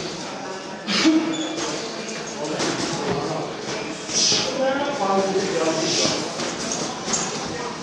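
A man talks in an echoing hall.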